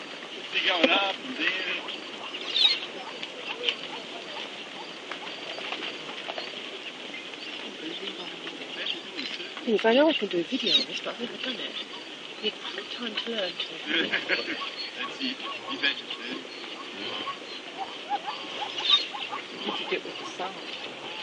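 A large herd of wildebeest grunts and moans all around.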